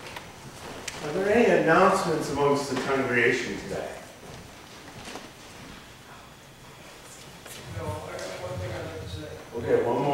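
An older man speaks calmly to a gathering.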